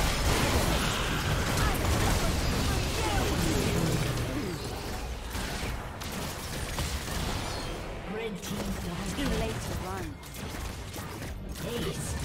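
Fantasy battle sound effects crash, zap and boom in quick succession.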